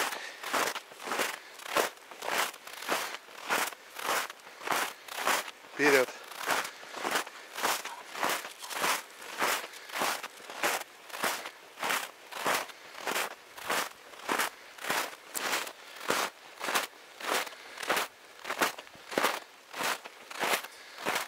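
Footsteps crunch rhythmically through snow, close by.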